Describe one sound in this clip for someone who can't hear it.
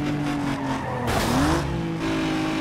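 Tyres screech as a car swerves through a bend.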